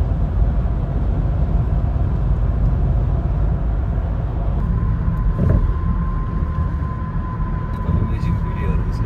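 Road noise rumbles from inside a moving car.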